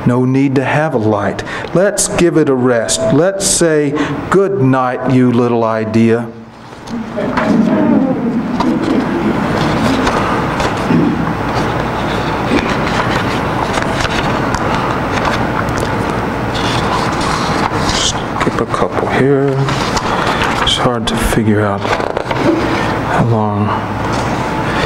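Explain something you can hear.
A man reads aloud calmly through a microphone.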